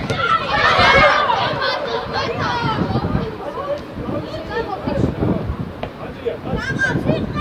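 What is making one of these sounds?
Young male players shout and call to each other on an open outdoor pitch.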